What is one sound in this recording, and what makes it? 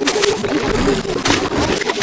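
An electric zap crackles.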